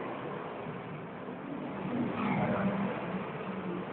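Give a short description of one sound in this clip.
A bus drives past nearby.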